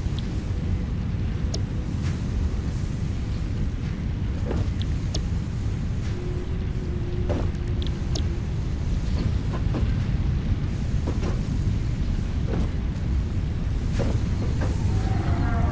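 Short clicks sound now and then.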